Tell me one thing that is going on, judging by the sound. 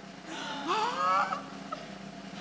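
A woman exclaims loudly through a microphone.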